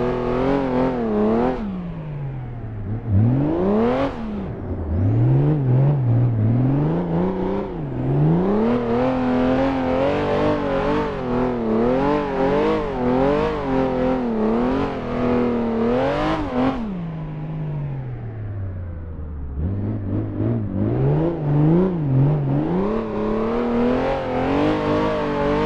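A car engine revs up and down, rising and dropping in pitch between gear shifts.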